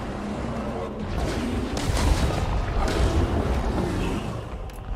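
A battle rumbles with heavy thuds and crashes.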